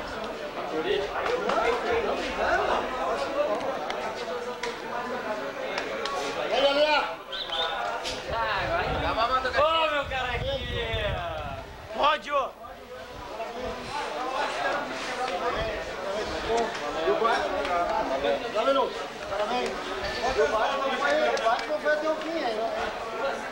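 A crowd of men talk and chatter nearby.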